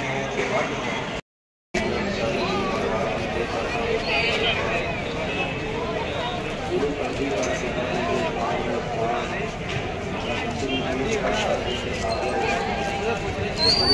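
A large crowd chatters and murmurs outdoors.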